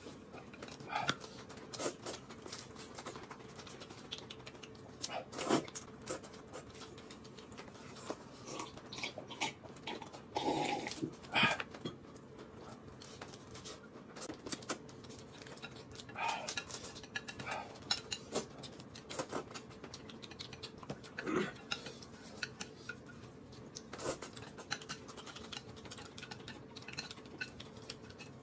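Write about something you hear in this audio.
A young man chews and smacks food close by.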